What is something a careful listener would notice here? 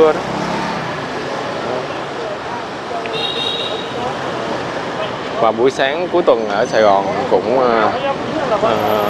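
Motorbike engines hum and rumble along a busy street.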